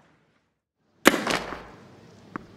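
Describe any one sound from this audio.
A tennis racket strikes a ball hard.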